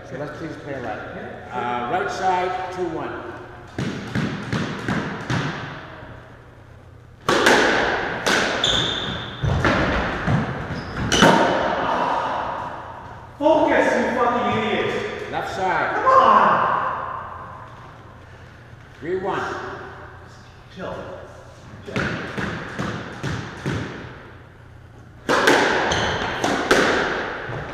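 A squash ball smacks off rackets and walls, ringing through an echoing court.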